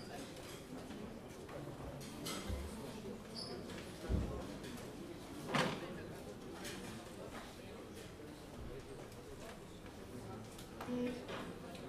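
Two electric guitars play a jazz tune together.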